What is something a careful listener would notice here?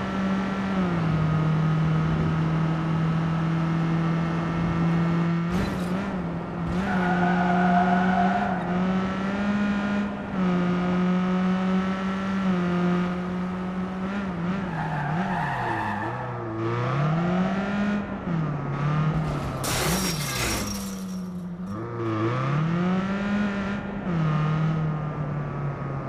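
A small car engine hums and revs up and down as the car speeds along.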